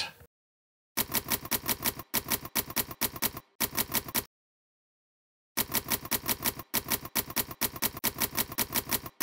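Typewriter keys clack in quick bursts.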